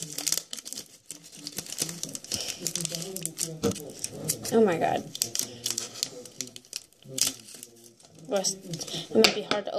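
Playing cards rustle and flick as they are handled and sorted.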